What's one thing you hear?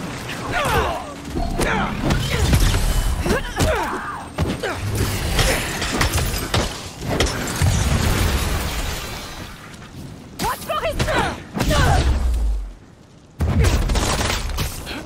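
Heavy blows and impacts land in quick succession.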